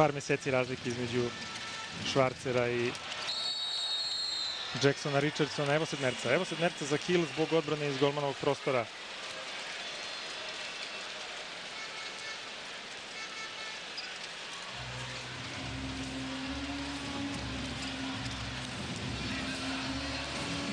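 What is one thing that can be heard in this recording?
A large crowd cheers and murmurs in a big echoing hall.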